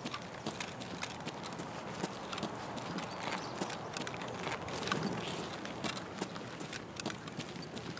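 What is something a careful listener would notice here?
Footsteps crunch steadily over gravel and rubble.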